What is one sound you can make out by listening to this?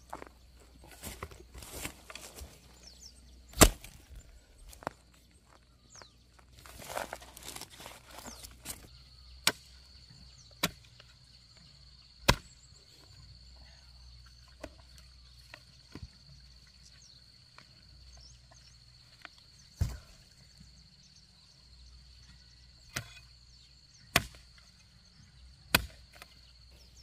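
A hoe chops into dry soil with dull thuds.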